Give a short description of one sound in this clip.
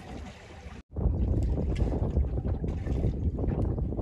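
A fishing reel clicks and whirs as it is wound in.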